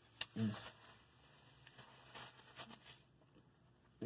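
A man blows his nose into a tissue.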